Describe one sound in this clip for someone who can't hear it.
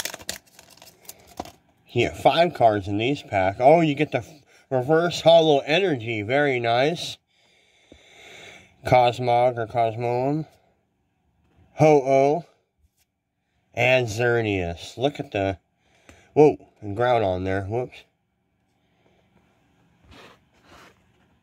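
Cards slide and rub against each other.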